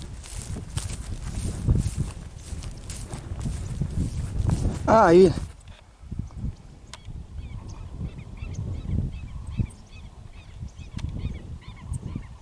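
Wind buffets the microphone outdoors in open country.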